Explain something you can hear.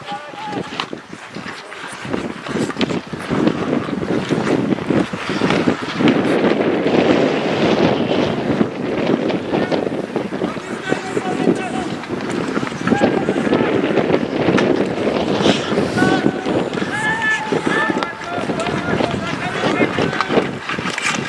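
Skates scrape and hiss across ice.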